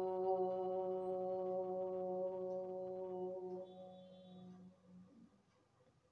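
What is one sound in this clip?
An older woman hums a long, steady note that slowly fades.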